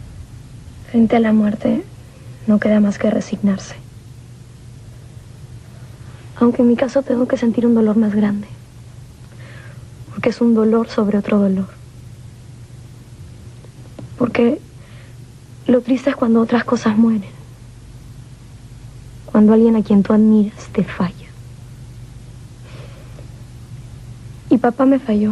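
A young woman speaks calmly and closely, in short phrases.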